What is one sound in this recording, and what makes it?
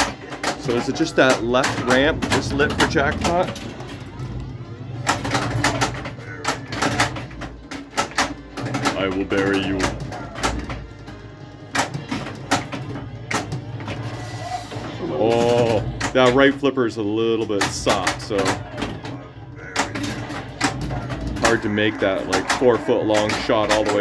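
A pinball machine plays loud electronic music and sound effects.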